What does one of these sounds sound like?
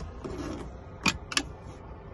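A compartment latch clicks and a lid opens.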